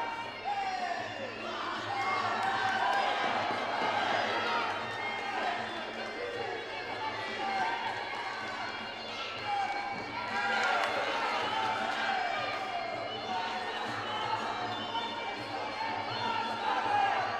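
A crowd shouts and cheers throughout in a large echoing hall.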